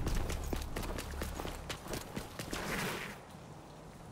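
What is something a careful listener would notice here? Footsteps run quickly over hard stone.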